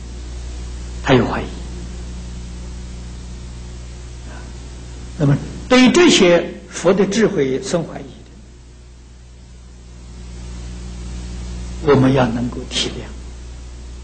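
An elderly man speaks calmly and slowly through a microphone, with long pauses.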